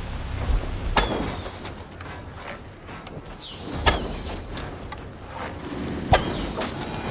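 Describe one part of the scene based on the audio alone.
A bowstring twangs sharply as arrows are loosed, several times.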